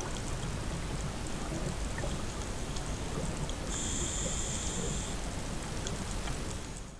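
A low, muffled underwater rumble goes on steadily.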